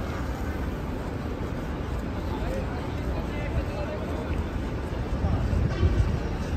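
A crowd of men chat and murmur nearby outdoors.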